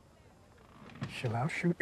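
A young woman speaks quietly, close by.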